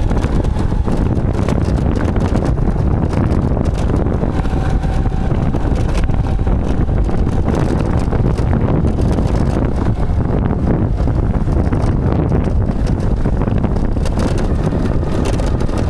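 Tyres crunch over a gravel road.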